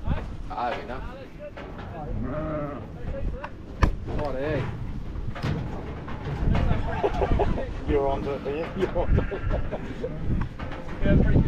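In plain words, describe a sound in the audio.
Many sheep bleat loudly and close by.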